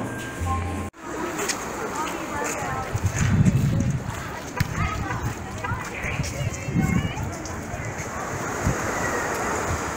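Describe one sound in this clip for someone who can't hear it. A crowd of people chatter outdoors nearby.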